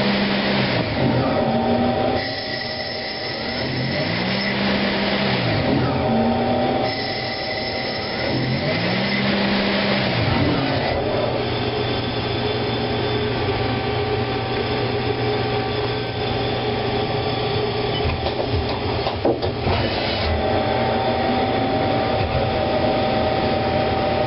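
A lathe whirs loudly as it cuts a spinning rod, with pitch rising and falling.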